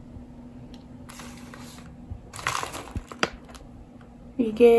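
A plastic bag crinkles under a hand.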